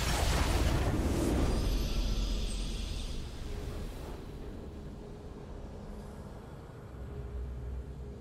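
A video game victory fanfare swells and fades.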